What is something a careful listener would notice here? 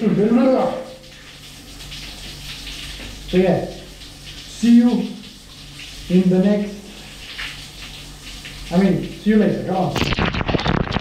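A young man talks with animation in an echoing tiled room.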